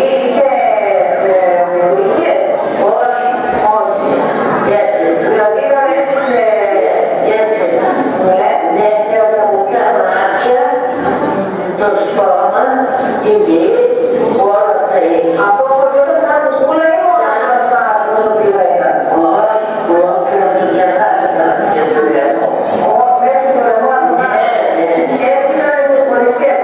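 A woman talks with animation, heard through a loudspeaker.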